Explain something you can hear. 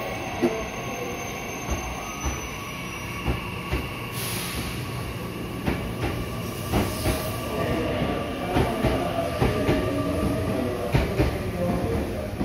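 A train's motor hums steadily as it passes.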